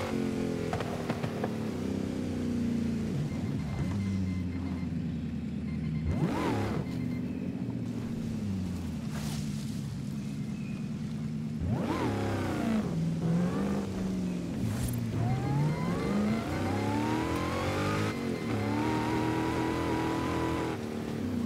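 A car engine roars and revs up and down as gears shift.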